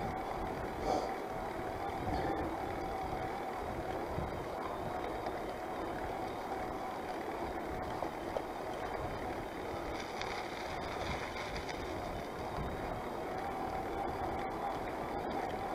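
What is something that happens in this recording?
Bicycle tyres hum steadily on a paved road.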